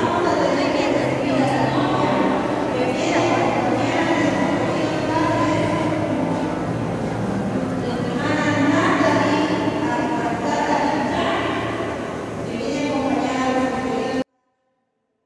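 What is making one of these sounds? A crowd murmurs nearby.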